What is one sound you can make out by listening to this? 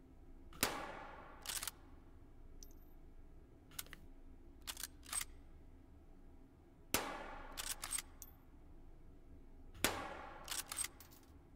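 A rifle fires single shots that echo through a large hall.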